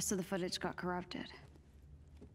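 A young woman speaks quickly close by.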